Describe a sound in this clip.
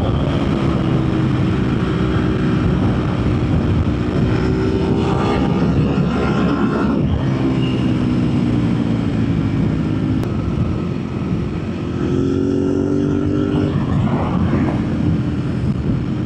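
A motorcycle engine hums steadily and changes pitch as the rider shifts and accelerates.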